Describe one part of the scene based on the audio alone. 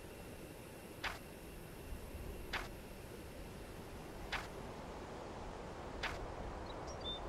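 Soft interface clicks sound as menu tabs are switched.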